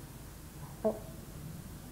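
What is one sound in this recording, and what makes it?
Paper rustles softly in an elderly woman's hands.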